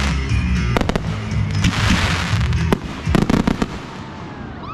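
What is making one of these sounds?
Fireworks burst with loud bangs nearby.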